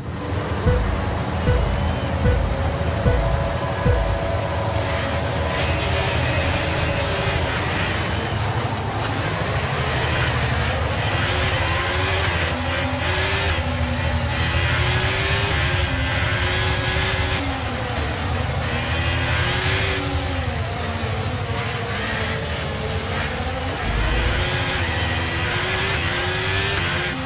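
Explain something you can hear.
A racing car engine revs hard and howls through gear changes.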